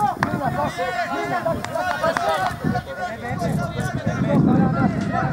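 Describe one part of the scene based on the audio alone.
Men close by talk and call out with animation outdoors.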